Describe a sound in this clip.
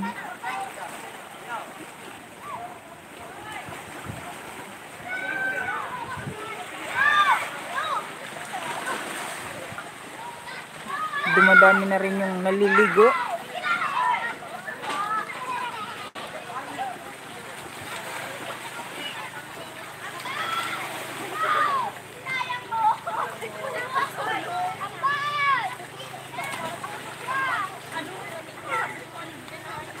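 Small waves lap and splash against rocks close by.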